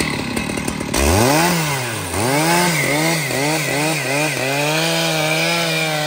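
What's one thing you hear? A chainsaw revs loudly up and down, cutting into wood.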